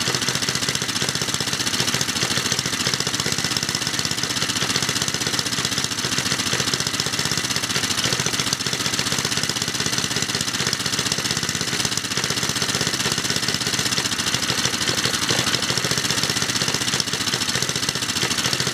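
A small petrol engine runs loudly at a steady, rapid chug close by.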